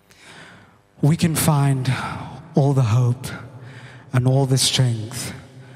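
A young man speaks into a microphone through loudspeakers.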